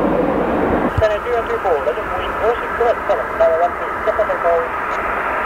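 A jet engine whines steadily as an airliner taxis.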